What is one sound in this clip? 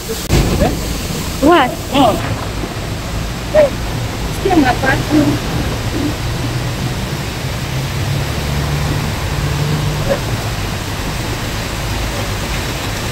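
Water splashes steadily down a wall fountain.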